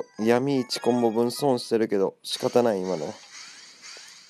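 Rising chimes ring out one after another as combos build up.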